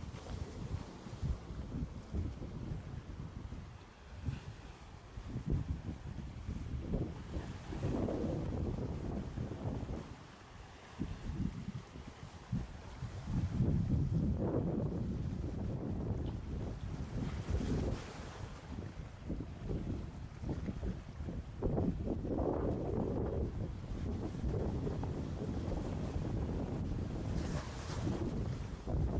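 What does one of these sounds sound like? Small waves wash over rocks along the shore.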